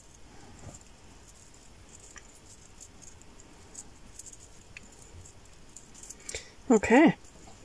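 Small beads click softly against each other and a wire.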